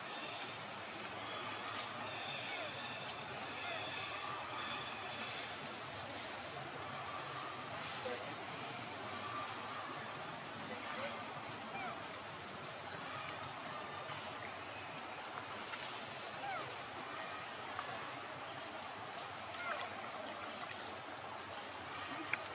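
Water splashes and ripples as monkeys move and wrestle in it.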